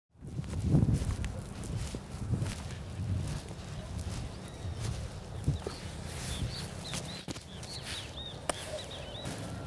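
Wind rumbles outdoors.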